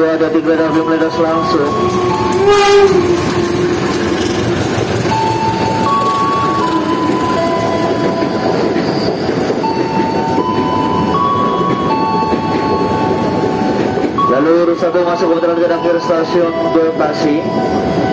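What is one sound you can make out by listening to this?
A train rumbles past close by on the rails.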